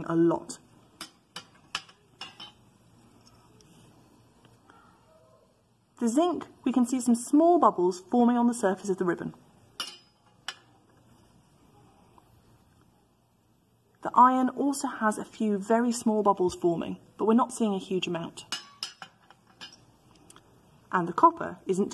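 A glass test tube clinks against a plastic rack.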